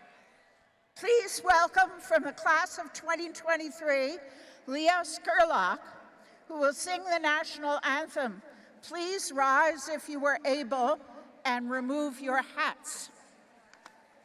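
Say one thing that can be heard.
An elderly woman speaks steadily through a microphone and loudspeakers outdoors.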